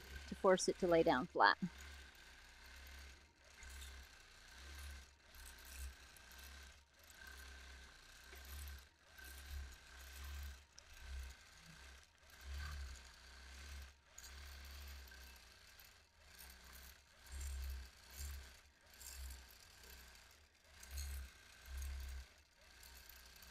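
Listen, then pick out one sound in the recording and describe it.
A quilting machine hums and whirs as it stitches, its speed rising and falling.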